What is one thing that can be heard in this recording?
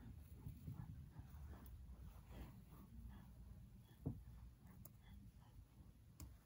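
Small plastic toy figures rustle and tap softly as they are set down on carpet.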